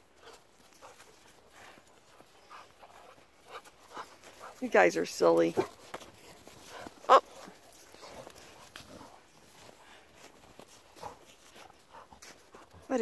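Paws crunch and scuffle through snow.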